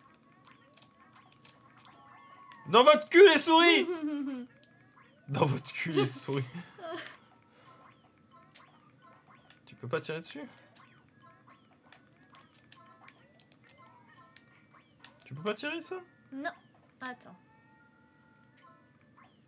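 Soft cartoon game chimes and pops play quietly.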